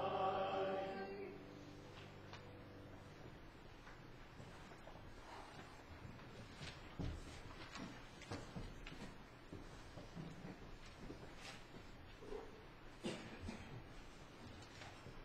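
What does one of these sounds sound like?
Seated people shift in wooden pews with occasional soft knocks in a large echoing hall.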